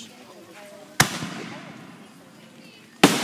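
A firework shoots up with a sharp crack.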